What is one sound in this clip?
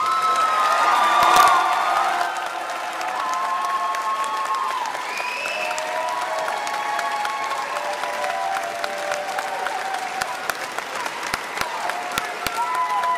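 A large band of brass and woodwind players plays a sustained tune in an echoing hall.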